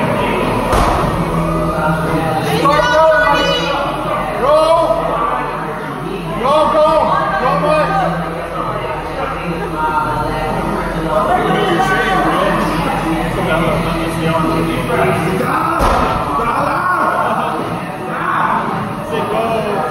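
A woman shouts encouragement loudly.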